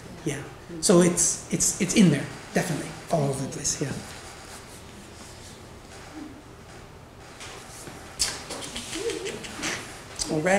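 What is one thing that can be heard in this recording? A man speaks to an audience in a room with a slight echo, pausing between phrases.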